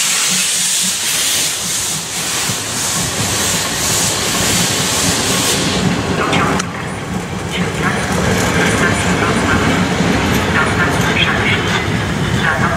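Train carriages rumble and clatter past on the rails.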